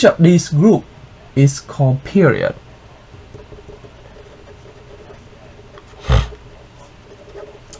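A marker squeaks faintly on paper.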